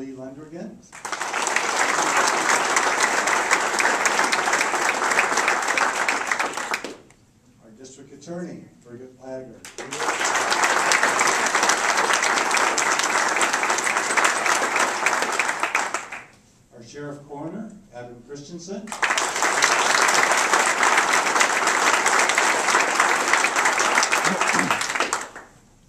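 A group of people applaud loudly.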